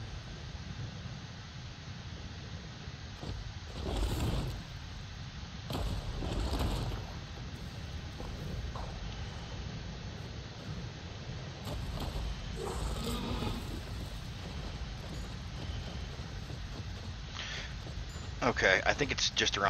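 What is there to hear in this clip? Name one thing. A large creature's feet thud heavily on rock.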